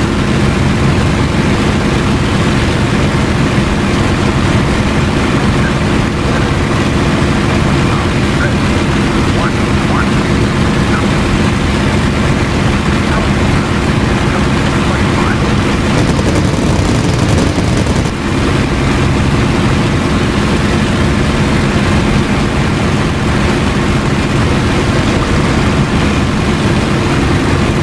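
A propeller engine drones loudly and steadily from inside a cockpit.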